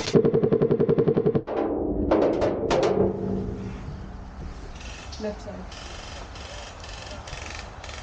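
Metal van doors creak and scrape as they swing open.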